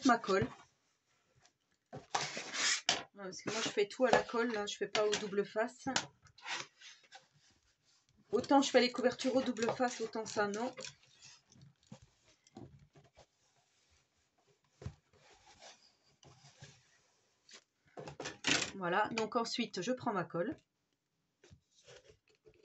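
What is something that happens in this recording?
Paper rustles and crinkles as a hand presses and smooths it flat.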